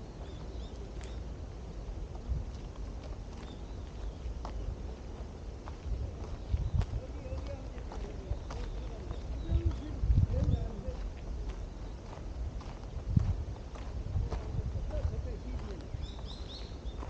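Footsteps crunch slowly on a dirt path outdoors.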